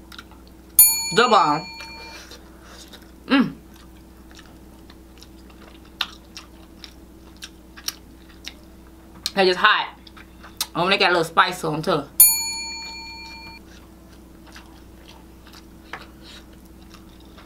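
A woman chews food with soft, wet smacking sounds.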